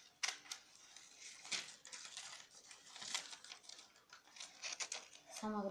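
Scissors snip and crunch through paper close by.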